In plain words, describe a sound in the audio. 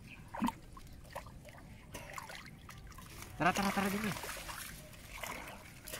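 Water splashes as a man wades through floating plants.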